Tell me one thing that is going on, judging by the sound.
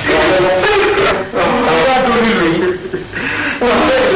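An elderly woman speaks in a pleading, tearful voice.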